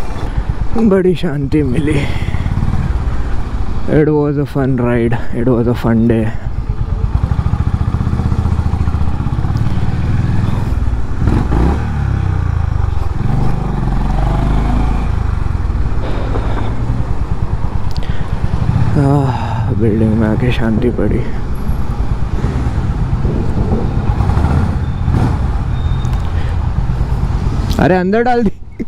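A motorcycle engine rumbles steadily at low speed.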